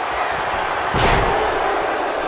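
A wrestler slams onto the ring mat with a heavy thud.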